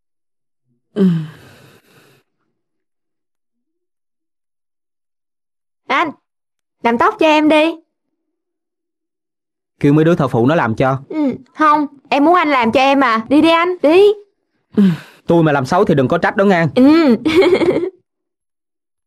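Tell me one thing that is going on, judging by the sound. A young woman talks with animation nearby.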